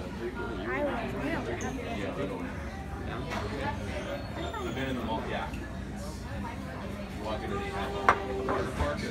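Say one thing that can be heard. A fork clinks against a dish.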